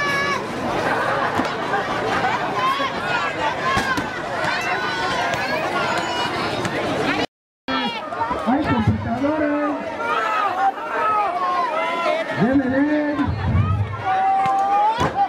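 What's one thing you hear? A crowd of men, women and children chatters and shouts outdoors.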